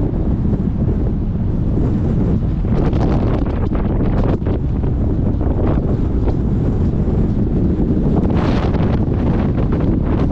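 Waves crash on a rocky shore in the distance.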